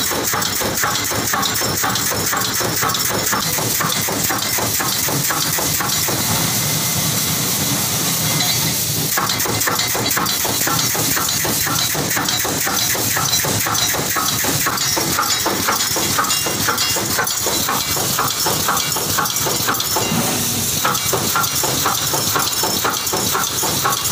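A pneumatic wire mesh welding machine clatters and hisses in rapid rhythmic strokes.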